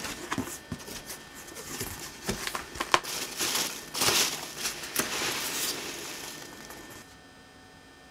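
Packing peanuts rustle and squeak as a hand digs through them.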